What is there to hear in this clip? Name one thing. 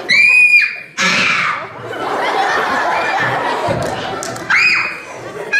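An audience cheers and laughs.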